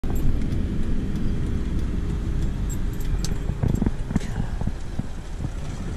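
Tyres roll steadily along a paved road.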